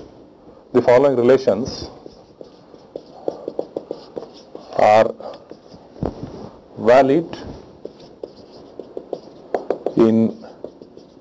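A man speaks slowly in short bursts, close to a microphone.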